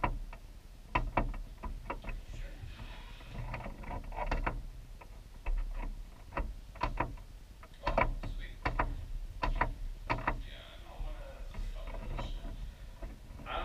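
A game menu clicks sharply as the selection moves.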